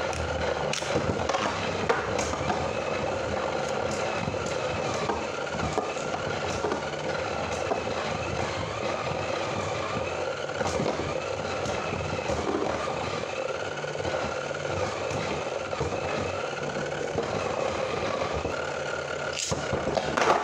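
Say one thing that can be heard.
Spinning tops whir steadily in a plastic arena.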